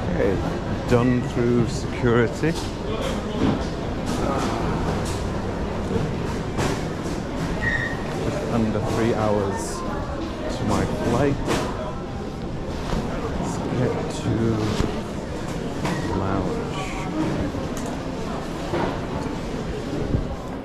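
Footsteps click on a hard floor.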